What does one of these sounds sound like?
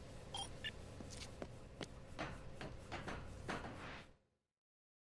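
Footsteps tread on a metal floor.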